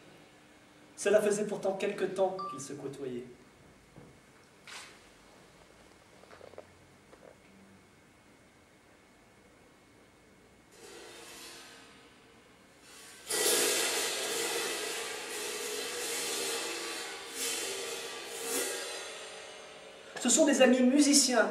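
A small metal percussion instrument is struck with sharp ringing hits.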